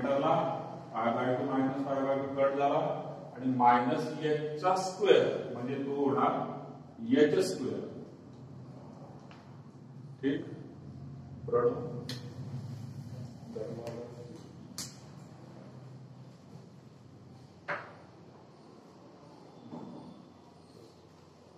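A man speaks calmly and explains in a slightly echoing room.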